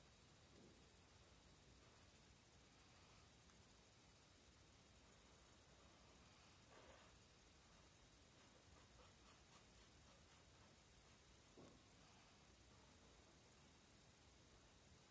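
A felt-tip pen squeaks and scratches softly on paper.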